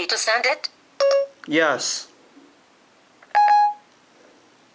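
A phone gives short electronic beeps.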